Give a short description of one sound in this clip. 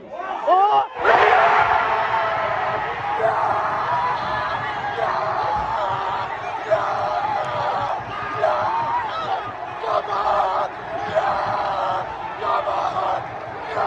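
A large crowd roars and cheers loudly outdoors.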